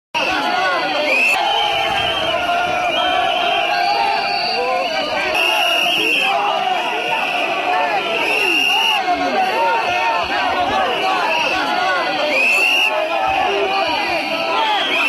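A large crowd of men and women shouts and chants loudly outdoors.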